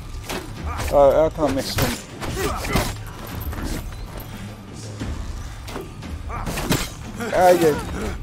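Blades clash and blows thud in a close fight.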